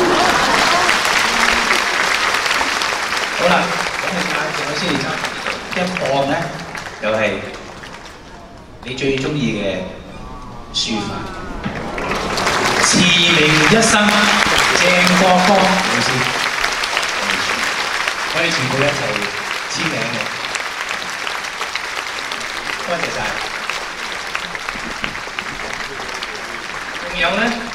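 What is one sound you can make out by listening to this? A man speaks with animation into a microphone over loudspeakers in a large hall.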